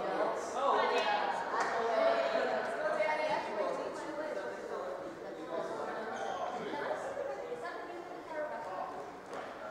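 A squash ball cracks sharply against the walls and rackets in an echoing court.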